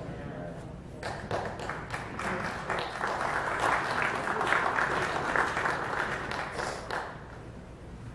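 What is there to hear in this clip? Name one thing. A congregation claps their hands.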